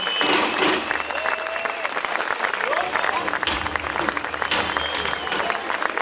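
Dancers stamp their feet on a wooden stage.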